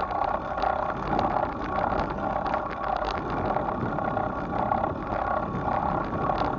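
A bicycle rattles and clicks over a paved path.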